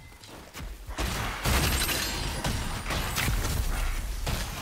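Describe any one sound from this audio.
Magic blasts and weapon strikes crash in a fight.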